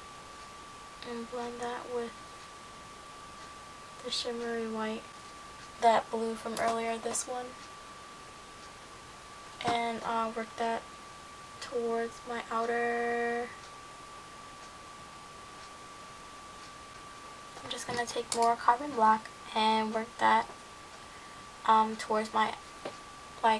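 A young woman speaks close by, calmly and in short bursts.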